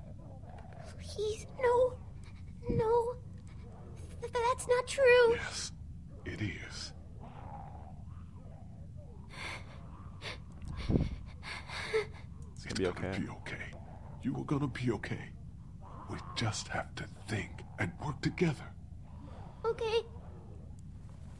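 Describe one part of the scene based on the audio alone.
A young man speaks softly.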